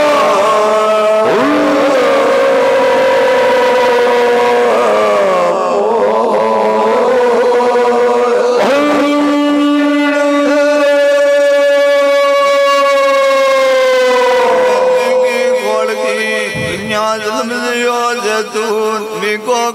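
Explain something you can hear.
Men sing together through loudspeakers, with long held notes.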